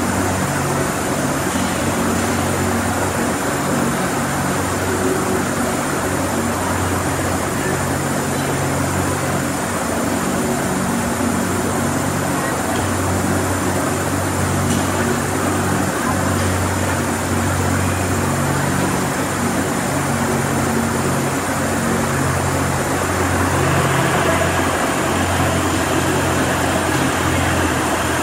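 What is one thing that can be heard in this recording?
A steady low hum of machinery fills a large echoing hall.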